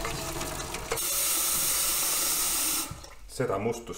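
Water runs from a tap into a pot.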